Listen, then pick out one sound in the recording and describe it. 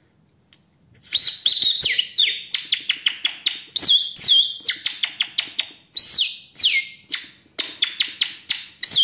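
A woman blows a shrill bird call held to her lips, making quick chirps and trills.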